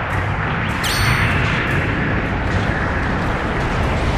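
An explosion booms with a rumble.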